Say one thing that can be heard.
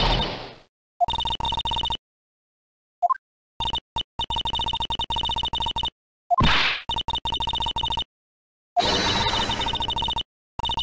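Rapid high electronic blips chatter in quick bursts.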